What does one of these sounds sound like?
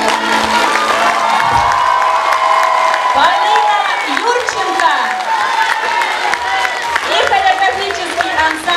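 A young girl sings through a microphone in a large hall.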